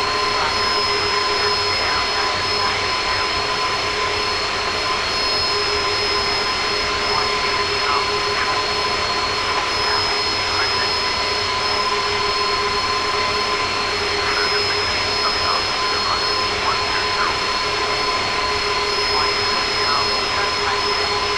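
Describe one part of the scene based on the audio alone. Jet engines of an airliner roar and whine steadily.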